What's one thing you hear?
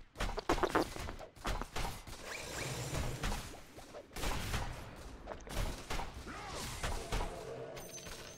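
Game battle effects clash and crackle.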